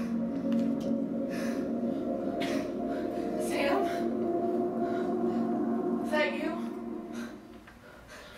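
A woman sings with a sustained voice in a large hall.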